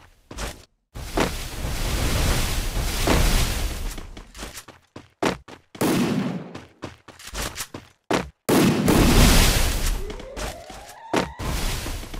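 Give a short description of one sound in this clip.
A wall of ice bursts up with a loud rushing whoosh.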